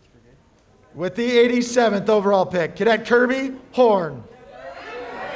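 A crowd of young people shouts and cheers loudly.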